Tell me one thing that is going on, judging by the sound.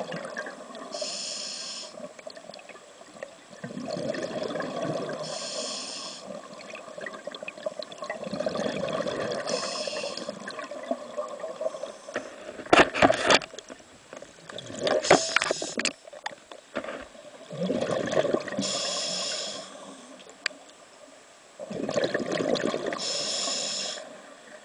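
Bubbles gurgle and rush up after each exhale.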